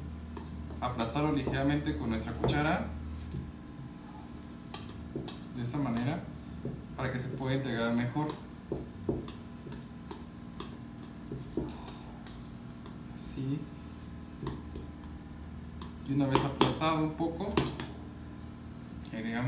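A fork clinks against a glass bowl while stirring.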